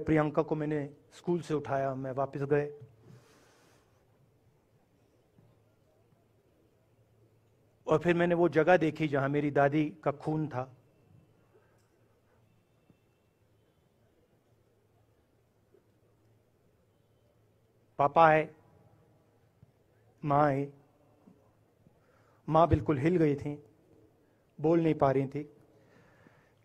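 A man speaks slowly and deliberately through a microphone and loudspeakers, pausing between phrases.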